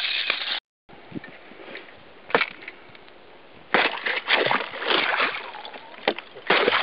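A pole tip jabs at ice with sharp knocks.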